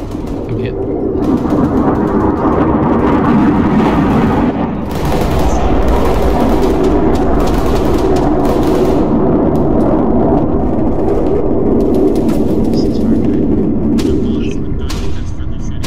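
A jet engine roars overhead.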